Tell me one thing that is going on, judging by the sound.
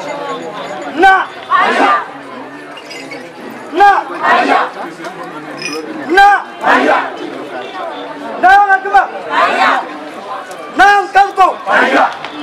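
A man chants loudly in short calls outdoors.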